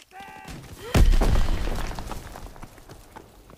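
A loud explosion booms close by and rumbles away.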